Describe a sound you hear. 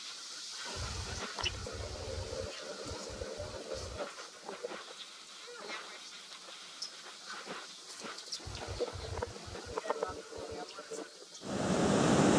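A group of adult men and women laugh and chatter loudly nearby.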